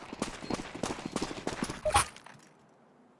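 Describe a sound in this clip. Gunshots crack rapidly in quick bursts.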